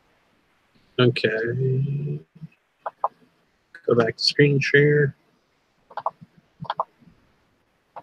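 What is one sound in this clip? A man speaks calmly and closely through a headset microphone, as if heard over an online call.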